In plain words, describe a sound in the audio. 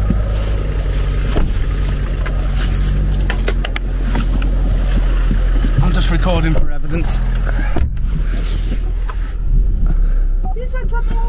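A car engine hums low and steadily.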